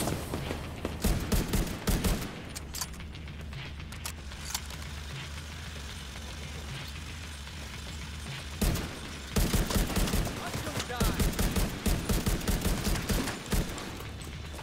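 Rifle shots fire in rapid bursts.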